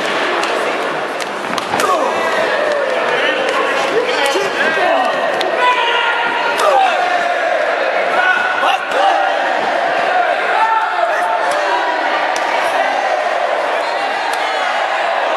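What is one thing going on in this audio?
Sharp slaps ring out as wrestlers strike each other's chests.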